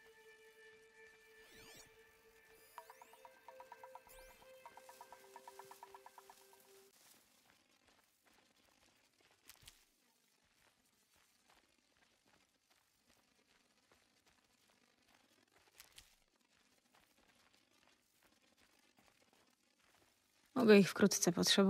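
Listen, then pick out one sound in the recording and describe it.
Footsteps run over dry ground.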